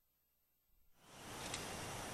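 Wind rushes steadily through trees outdoors.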